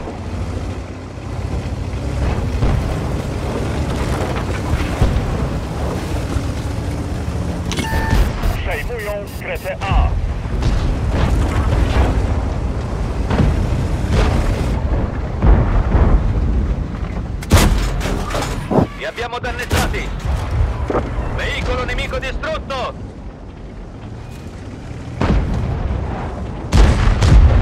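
A heavy tank engine rumbles and clanks steadily.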